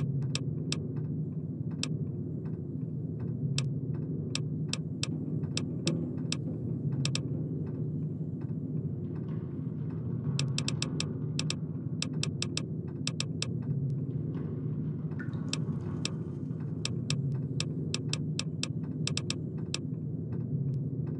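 Short soft clicks tick quickly, one after another, as a menu scrolls.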